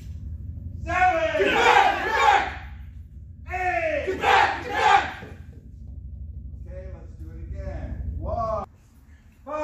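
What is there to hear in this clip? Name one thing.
A group of men shout together in an echoing hall.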